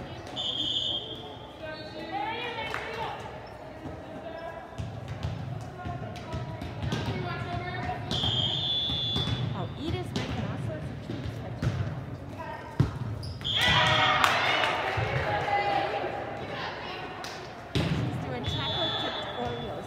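A volleyball is struck with sharp smacks in a large echoing gym.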